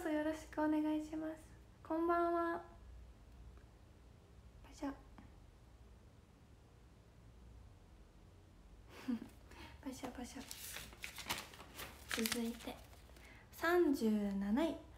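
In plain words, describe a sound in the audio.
A young woman speaks close to a microphone, in an animated, sing-song voice.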